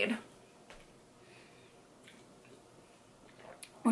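A young woman sips a drink and swallows.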